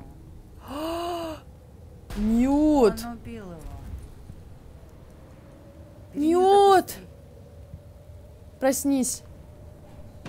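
Two young women talk with animation close to a microphone.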